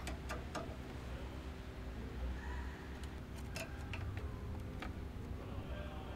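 Small plastic connectors click into place.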